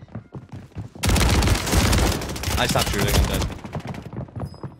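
An automatic shotgun fires in rapid blasts.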